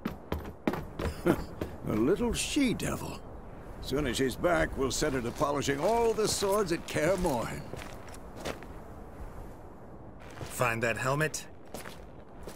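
An older man answers in a deep, measured voice.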